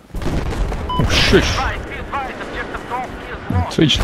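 A distant explosion booms.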